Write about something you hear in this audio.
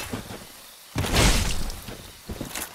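A heavy thud sounds as a body rolls across the ground.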